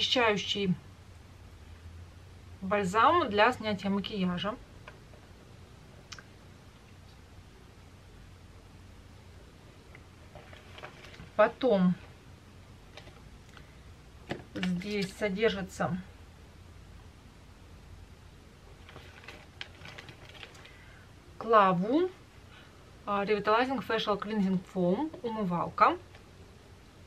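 A woman speaks softly and calmly close to a microphone, in short bursts with pauses.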